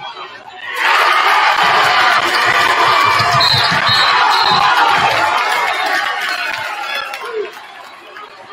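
A large crowd cheers loudly in an echoing gym, then quiets down.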